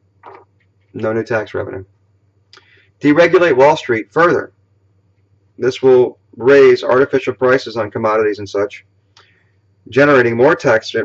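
A middle-aged man talks calmly and closely into a microphone, with pauses.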